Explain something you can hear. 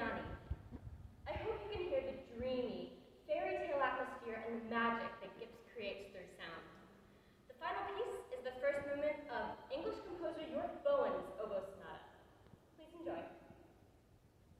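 A young woman speaks calmly to an audience in an echoing hall.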